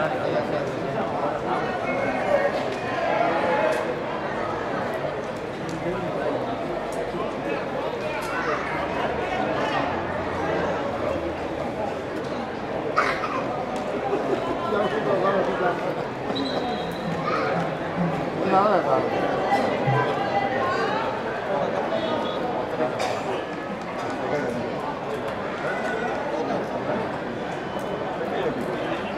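A crowd of spectators murmurs and chatters nearby outdoors.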